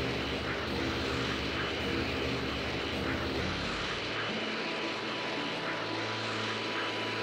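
A loud, steady whooshing rush of flight through the air.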